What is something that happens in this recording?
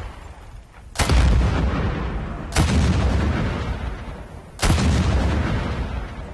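Loud explosions boom nearby and rumble away.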